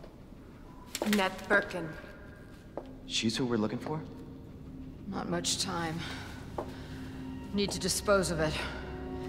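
A young woman speaks anxiously.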